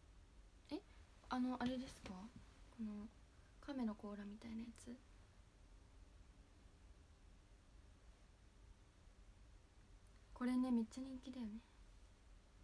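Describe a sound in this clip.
A young woman speaks softly and close to a microphone, in short bursts.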